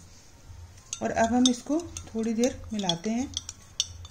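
A plastic spoon stirs liquid in a glass.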